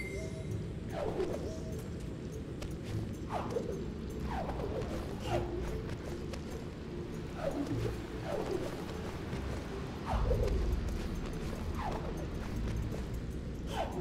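Soft airy whooshes sound each time a small glowing creature leaps.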